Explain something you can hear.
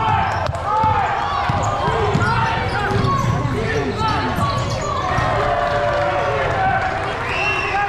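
A basketball thumps on the floor as it is dribbled.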